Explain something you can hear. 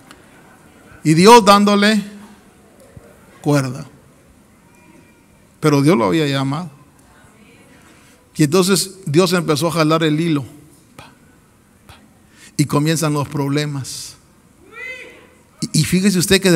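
A middle-aged man preaches forcefully into a microphone in short bursts, amplified in a large echoing hall.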